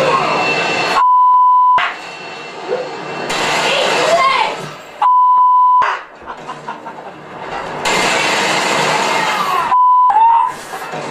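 A television gives off a steady high beep several times.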